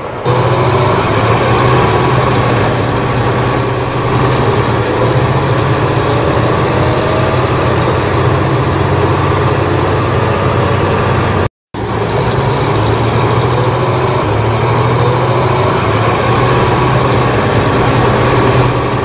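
A bus engine hums steadily and whines as it accelerates.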